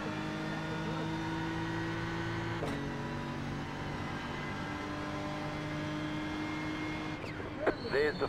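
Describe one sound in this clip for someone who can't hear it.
A racing car engine roars steadily through a loudspeaker.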